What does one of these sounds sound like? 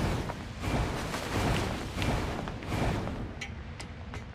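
Water splashes.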